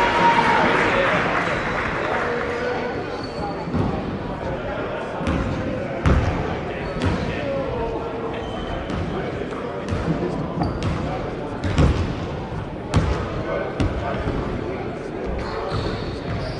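A crowd of young people chatters in the distance.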